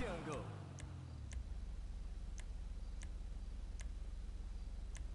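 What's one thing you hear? Short, soft menu clicks tick now and then.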